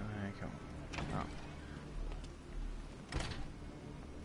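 A heavy metal door clanks open.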